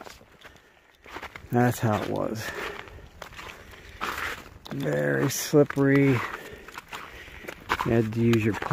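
Footsteps crunch and squelch on a snowy, slushy path.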